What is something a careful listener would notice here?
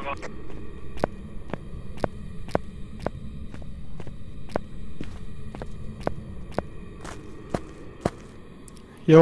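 Footsteps tap at an even pace on a hard floor.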